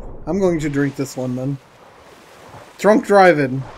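Waves wash and churn on the open sea.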